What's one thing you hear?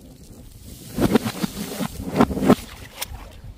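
A paint-filled balloon bursts against the ground with a wet splat.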